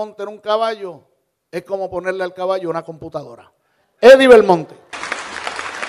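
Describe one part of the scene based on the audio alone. A man speaks formally through a microphone and loudspeakers.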